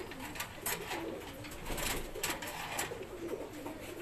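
A wire cage door rattles.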